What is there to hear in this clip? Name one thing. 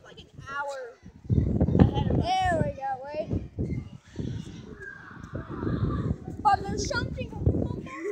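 A child speaks with animation close to a phone microphone.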